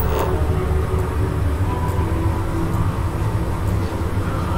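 Footsteps tap on a metal floor.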